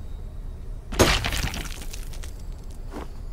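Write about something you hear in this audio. Plaster cracks and crumbles under a hammer blow.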